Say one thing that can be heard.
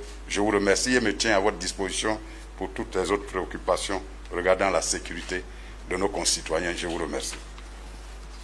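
A man speaks steadily into a microphone.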